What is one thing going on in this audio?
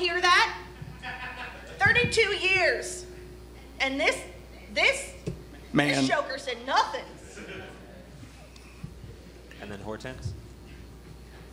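A man speaks with animation from a stage.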